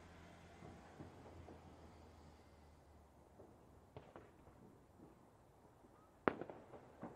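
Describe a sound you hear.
Fireworks burst with bangs and crackling, some distant and some close.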